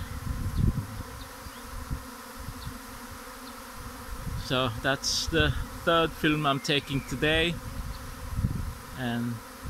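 Wind rustles through leafy branches.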